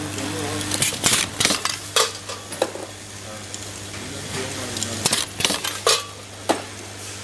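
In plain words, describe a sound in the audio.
A machine press thumps with sharp clacks.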